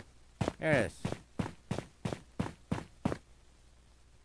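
Footsteps clang quickly on a metal floor.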